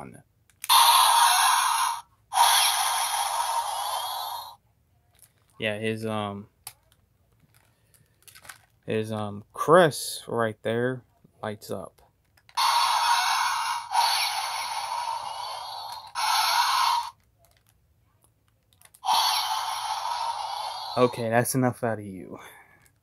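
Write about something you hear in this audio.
A toy robot plays loud, hissing electronic blaster sounds in bursts.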